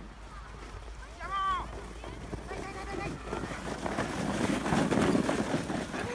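A sled scrapes and hisses over snow, growing louder as it comes near.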